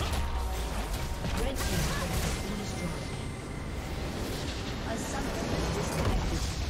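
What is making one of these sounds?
Game battle effects clash and crackle with spells and hits.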